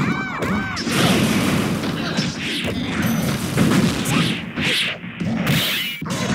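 Crackling energy bursts flare and whoosh.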